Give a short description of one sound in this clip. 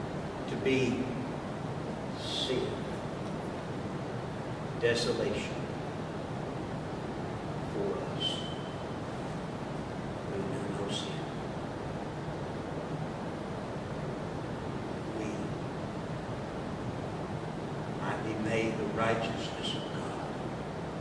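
A middle-aged man speaks with long pauses into a microphone in a large echoing hall.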